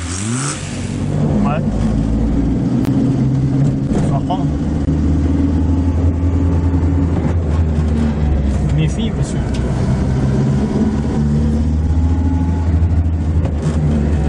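A small car engine hums and drones steadily while driving.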